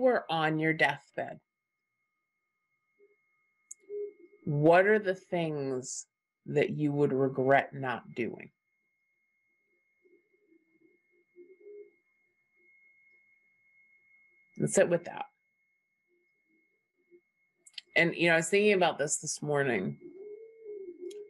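A middle-aged woman speaks thoughtfully over an online call, pausing often.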